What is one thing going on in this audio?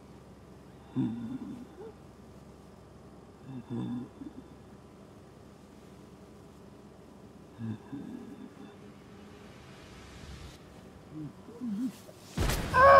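A man breathes heavily through a gas mask.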